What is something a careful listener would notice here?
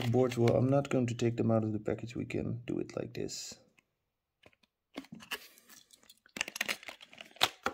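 A plastic tray crackles and clicks as it is handled.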